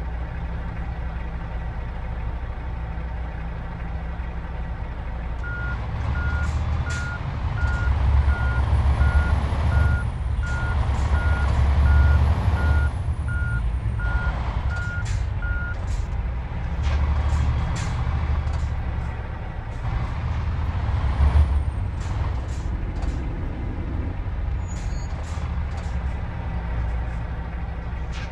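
A truck's diesel engine idles and revs.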